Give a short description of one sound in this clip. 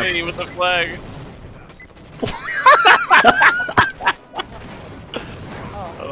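A grenade explodes with a loud boom.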